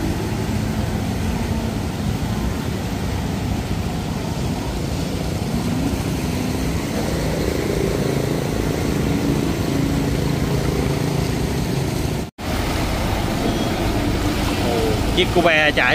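Water splashes and swishes as wheels push through a flood.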